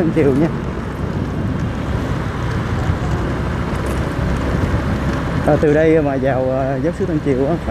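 A motorbike engine hums steadily close by.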